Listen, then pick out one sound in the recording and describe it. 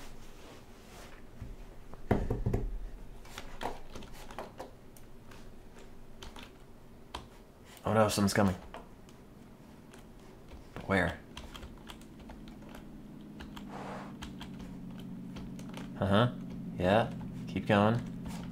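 Footsteps tread slowly on a wooden floor indoors.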